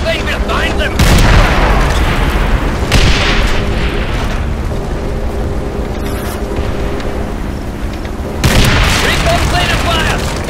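A tank cannon booms and explosions blast.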